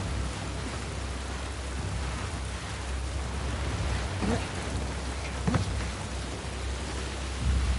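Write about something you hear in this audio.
Footsteps thud on a hard walkway.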